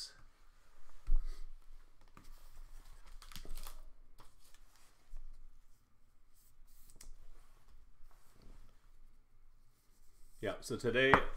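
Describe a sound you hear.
Trading cards rustle and tap as hands handle them.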